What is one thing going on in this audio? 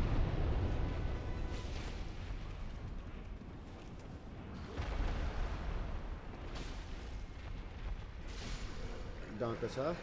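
A huge beast growls with a deep rumble.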